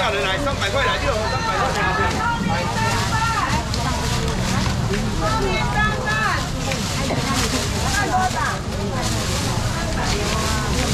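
A crowd of men and women chatters loudly all around, close by.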